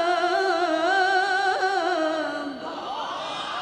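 A woman sings a long, wavering chant loudly through a microphone, echoing in a large hall.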